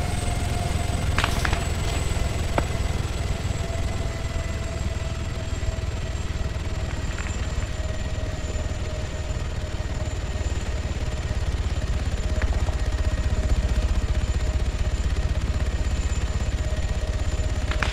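A helicopter's rotor beats loudly with a steady low thumping.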